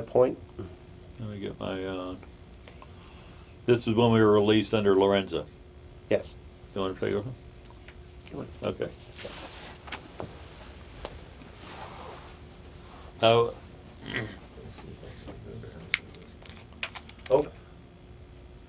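A middle-aged man speaks calmly and close by, with pauses.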